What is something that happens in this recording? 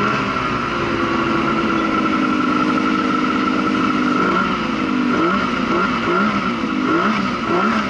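A snowmobile engine roars close by, its pitch rising and falling as it revs.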